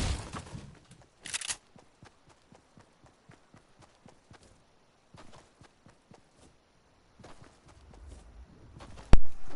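Quick footsteps run over grass.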